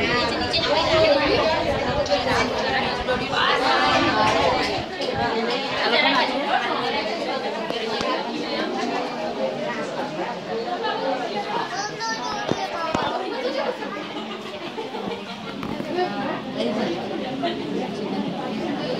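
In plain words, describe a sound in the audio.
A group of women chat and talk over one another in a crowded room.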